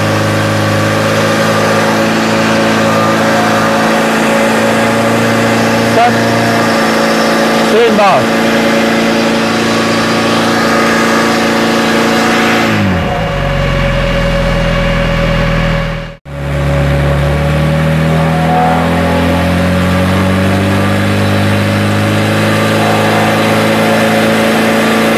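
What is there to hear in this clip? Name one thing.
A pump engine drones loudly and steadily, changing pitch as it is throttled.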